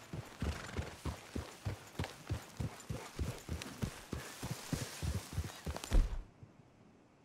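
Horse hooves thud steadily on a dirt trail.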